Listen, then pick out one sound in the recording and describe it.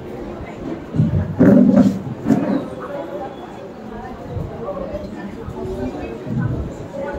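A man plays tabla drums with soft thumps and taps.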